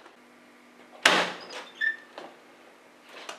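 A door opens with a sudden knock and rattle.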